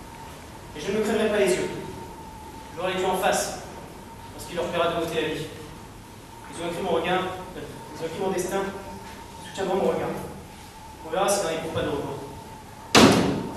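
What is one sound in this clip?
A young man speaks with feeling, in short phrases with pauses.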